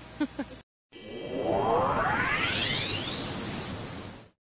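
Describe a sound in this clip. A whooshing sound effect rises steadily in pitch.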